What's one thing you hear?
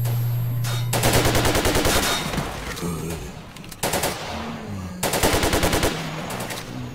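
A rifle fires in rapid bursts, echoing in a tunnel.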